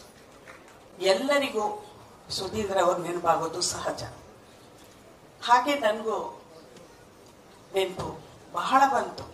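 A woman speaks into a microphone, heard through a loudspeaker, in short phrases with pauses.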